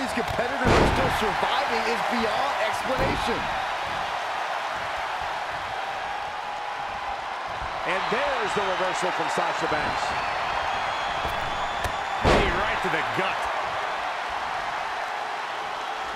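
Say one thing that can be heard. A large crowd cheers and roars steadily in a big arena.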